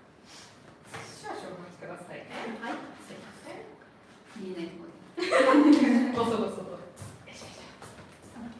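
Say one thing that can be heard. Young women talk and laugh among themselves.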